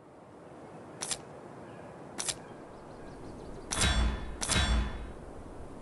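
Short game menu clicks sound as buttons are tapped.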